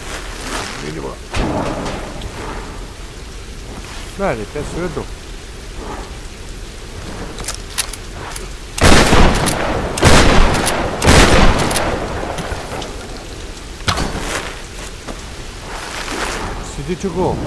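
A young man talks calmly into a microphone.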